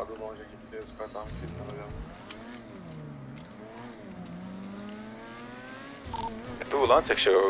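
A car engine revs and accelerates.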